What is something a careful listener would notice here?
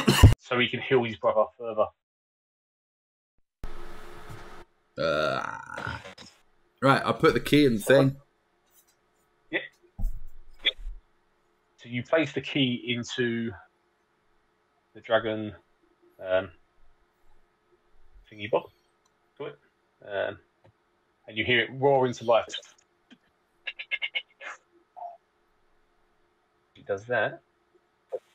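Several men and women talk and laugh over an online call, taking turns.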